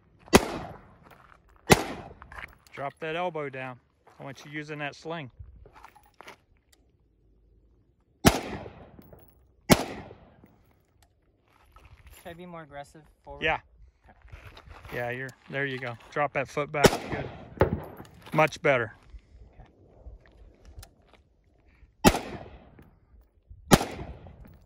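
A rifle fires sharp shots outdoors, each with a short echo.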